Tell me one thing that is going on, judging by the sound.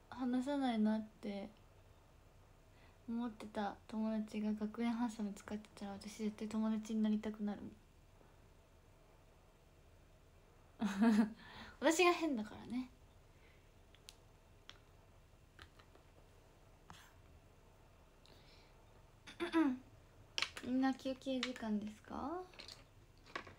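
A young woman talks softly and closely, in short bursts with pauses.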